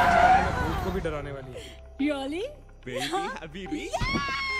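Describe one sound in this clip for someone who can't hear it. A young man talks cheerfully nearby.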